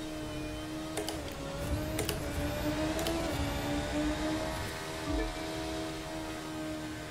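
A racing car's electric motor whines steadily at high speed.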